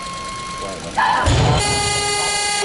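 A loaded barbell drops and crashes onto the platform.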